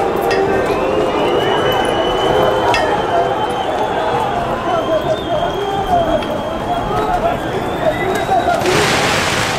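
A large crowd shouts and clamours outdoors.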